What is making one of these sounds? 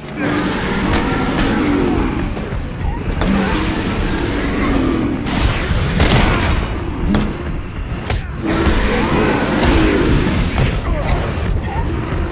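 Heavy punches and kicks land with dull thuds.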